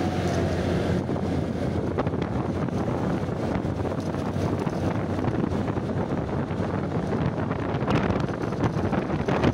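Wind rushes past while riding along a road.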